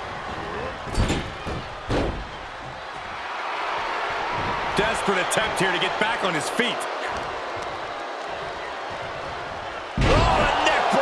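A heavy body slams onto a wrestling mat with a dull thud.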